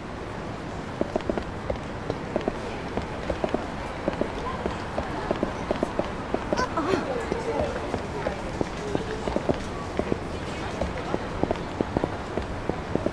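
Footsteps tap on pavement at a brisk walk.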